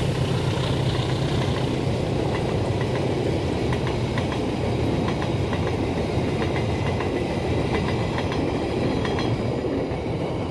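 Train wheels click rhythmically over the rail joints.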